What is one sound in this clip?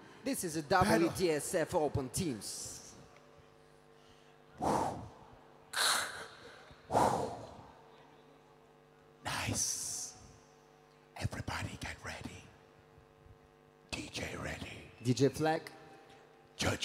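A crowd cheers and whoops in bursts in a large echoing hall.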